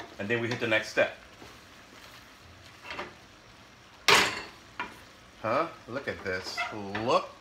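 A wooden spoon stirs and scrapes pasta in a metal pan.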